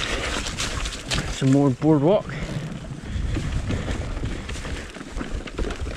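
A bicycle rattles and clatters over wooden planks.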